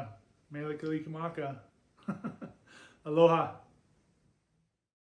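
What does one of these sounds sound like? A middle-aged man speaks with animation close to the microphone.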